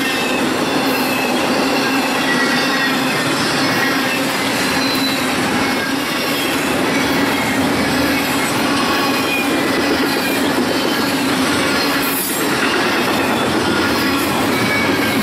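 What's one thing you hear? Steel wheels squeal and screech against the rails.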